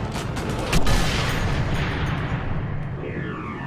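A bullet whooshes through the air.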